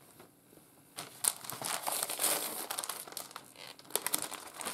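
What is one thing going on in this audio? Paper and plastic sheets rustle as they are handled.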